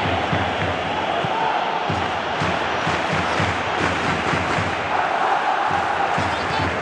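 A large crowd roars and chants steadily in a stadium.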